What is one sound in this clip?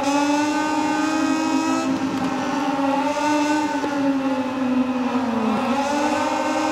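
Several motorcycles roar past close by.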